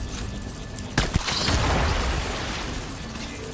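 An explosion bursts with a loud boom and rumbling debris.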